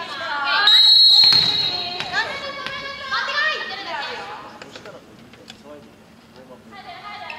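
Young women shout and cheer together in a large echoing hall.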